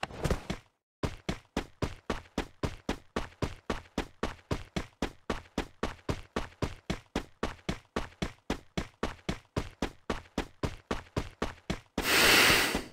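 Footsteps run quickly and steadily over the ground.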